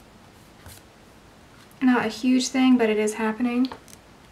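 A hand brushes softly across paper.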